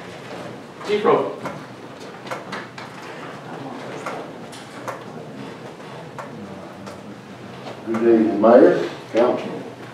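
An older man speaks calmly into a microphone in a quiet room.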